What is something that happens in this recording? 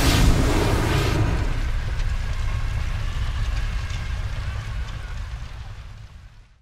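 Embers crackle and pop.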